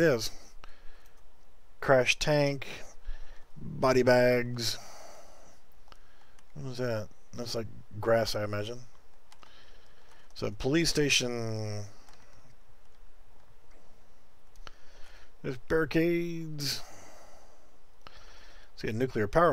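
A middle-aged man talks calmly and closely into a microphone, in short bursts with pauses.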